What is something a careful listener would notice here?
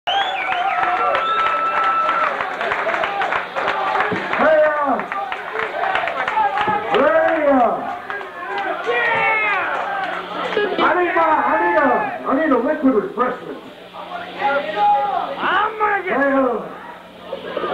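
A man sings loudly into a microphone with a live band.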